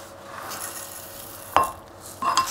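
Seasoning shakes from a shaker into a bowl.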